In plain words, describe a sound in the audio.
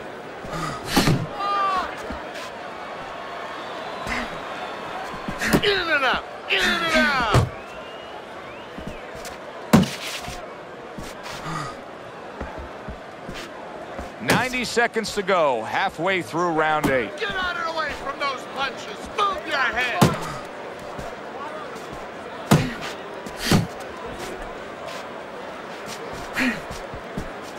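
Boxing gloves thud against a body in sharp punches.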